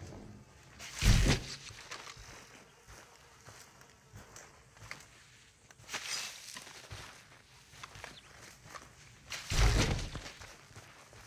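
A load of manure drops into a wheelbarrow with a heavy thump.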